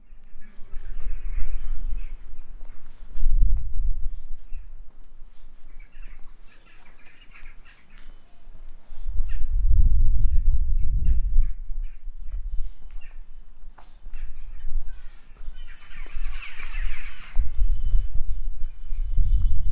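Footsteps tread on brick paving outdoors.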